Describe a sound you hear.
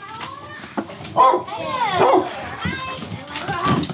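Dogs whine and whimper close by.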